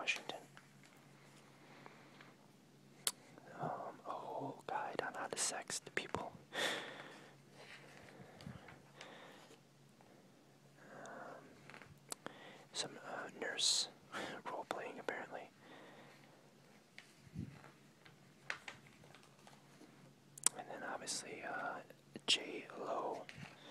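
Magazine pages rustle and flap as they are turned by hand.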